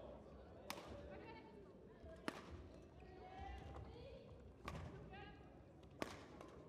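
Shoes squeak on a sports floor.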